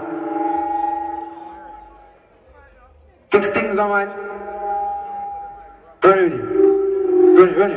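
A young man sings into a microphone, heard through loudspeakers.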